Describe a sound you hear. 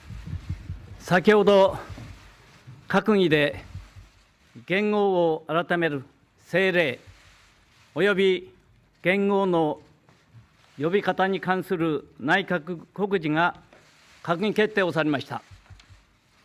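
An older man speaks calmly and deliberately into a microphone.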